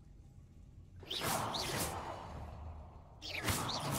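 A shimmering magical chime rings out from a glowing platform.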